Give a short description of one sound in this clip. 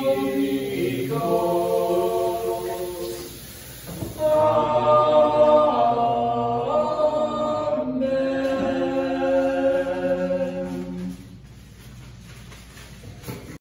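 Water runs from taps into sinks.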